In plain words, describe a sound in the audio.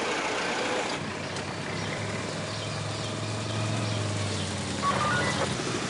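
A motorcycle engine hums as it rides slowly closer.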